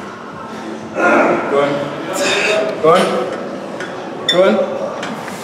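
A man grunts with strain close by.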